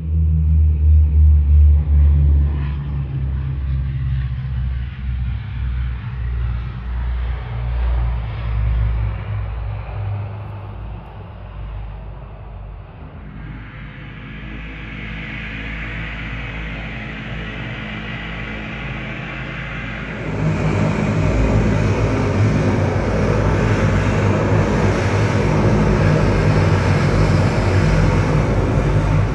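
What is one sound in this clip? A propeller plane's engines drone steadily and grow louder as it taxis closer.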